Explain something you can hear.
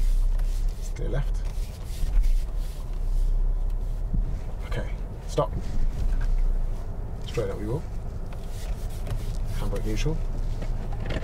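A man speaks calmly, giving short instructions.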